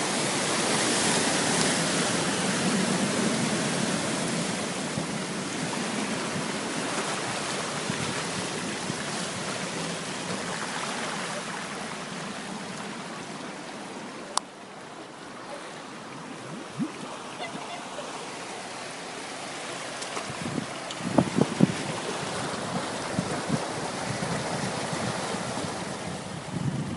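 Floodwater rushes and laps along the street.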